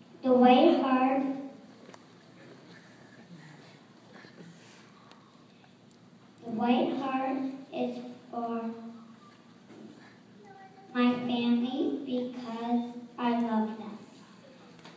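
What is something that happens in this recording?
A young girl speaks through a microphone in a large echoing hall.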